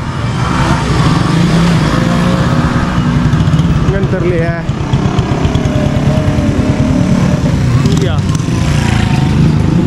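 A motorbike engine hums as it rides past.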